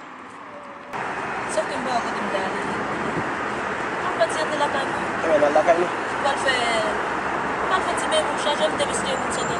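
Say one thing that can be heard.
A young woman talks with animation close by inside a car.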